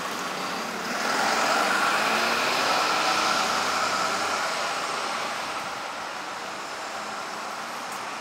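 A car drives slowly past with its engine humming.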